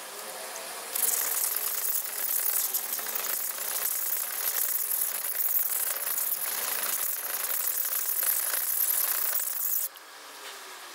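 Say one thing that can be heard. A knife blade scrapes rhythmically across a wet sharpening stone.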